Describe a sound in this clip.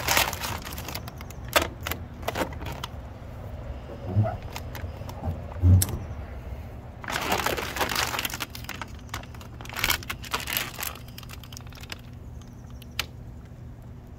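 A plastic film crinkles and rustles as hands peel it away.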